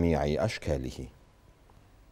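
A middle-aged man speaks calmly over a phone line.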